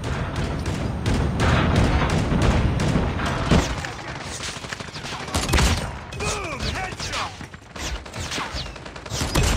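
A sniper rifle fires a single sharp shot.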